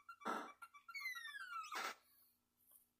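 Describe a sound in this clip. A descending electronic zap sounds from a video game.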